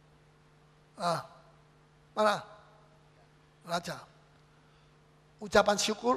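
A man speaks with animation through a microphone in short bursts.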